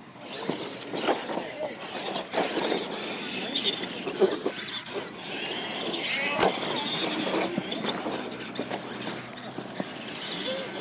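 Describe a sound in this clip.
Electric motors of toy trucks whine as the trucks race over dirt.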